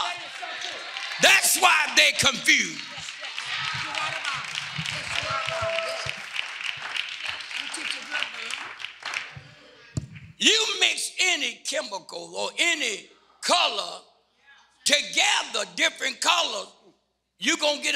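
A man speaks with animation through a microphone in a reverberant hall.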